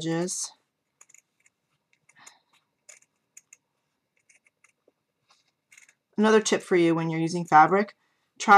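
Paper rustles and crinkles between fingers.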